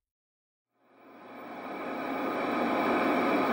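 A television hisses with static.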